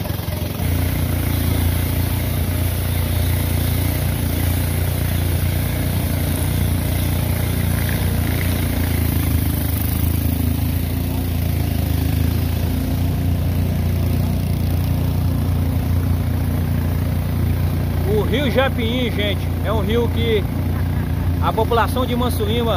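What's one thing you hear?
Water splashes and rushes past a boat's hull.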